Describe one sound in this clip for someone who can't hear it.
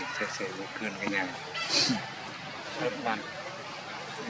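A baby monkey squeaks softly up close.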